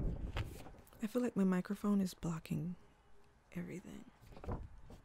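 A young woman talks softly close to a microphone.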